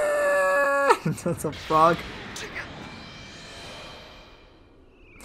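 An energy blast explodes with a loud roar.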